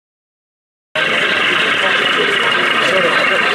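A model diesel engine hums steadily.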